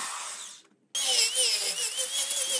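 An angle grinder whirs loudly against wood.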